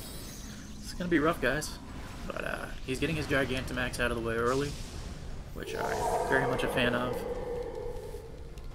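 A large creature lets out deep, warbling roars.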